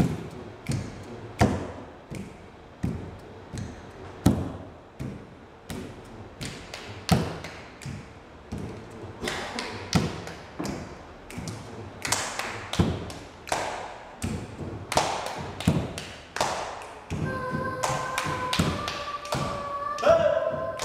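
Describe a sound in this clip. Hands clap in a steady, uneven rhythm in an echoing room.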